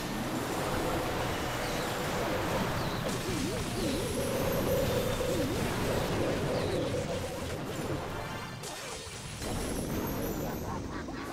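Battle sound effects crash and boom steadily.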